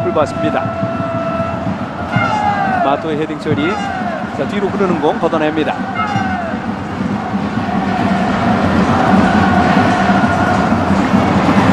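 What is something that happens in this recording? A large stadium crowd roars and chants steadily outdoors, growing louder toward the end.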